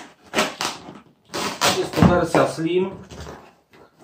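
Cardboard flaps scrape and rustle as a box is opened.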